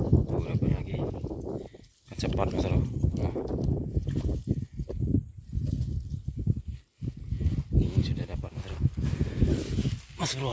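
A cast net rustles softly.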